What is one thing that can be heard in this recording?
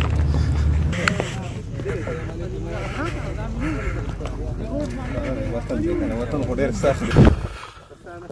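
Several men talk loudly over each other close by, outdoors.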